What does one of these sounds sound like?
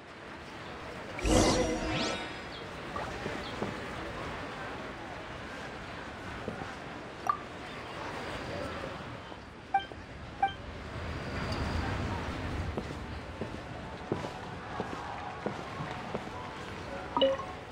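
Footsteps tap on wooden floorboards.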